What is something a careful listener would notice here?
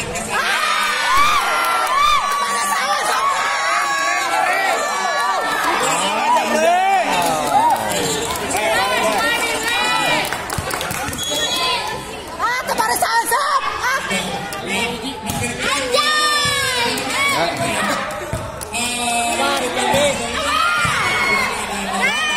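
Children shout and cheer excitedly nearby, outdoors.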